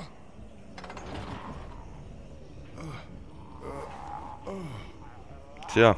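A man grunts and murmurs nervously close by.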